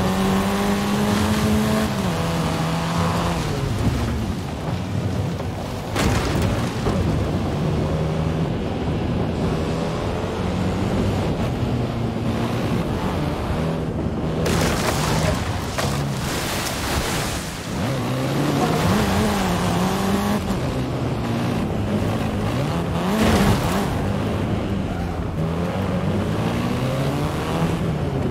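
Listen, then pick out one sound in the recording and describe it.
A car engine revs and changes pitch as it accelerates and shifts gears.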